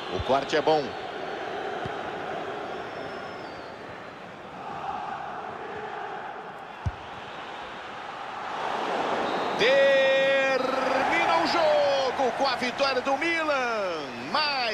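A stadium crowd roars steadily and swells louder.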